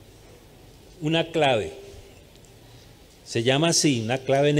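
An older man speaks with emphasis into a microphone, in short bursts with pauses.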